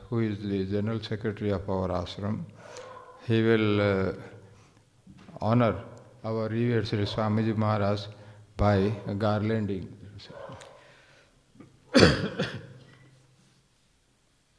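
An elderly man chants into a microphone in a slow, drawn-out voice.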